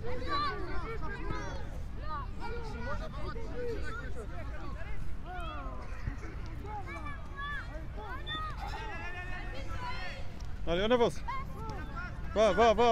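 Young children shout and chatter outdoors.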